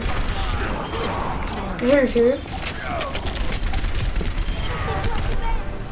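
A futuristic gun fires rapid shots.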